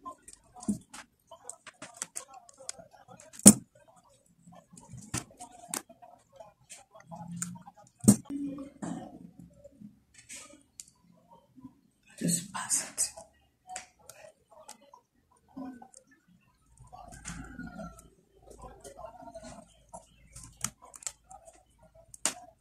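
Plastic beads click and rattle against each other as hands handle them.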